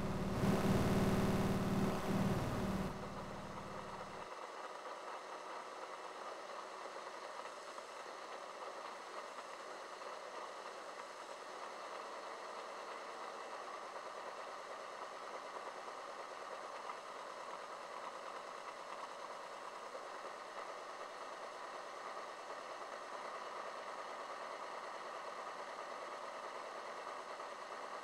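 Electronic music drones loudly and then settles into a quiet, steady hum.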